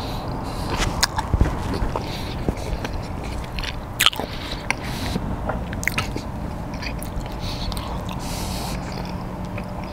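A man chews and crunches food close by.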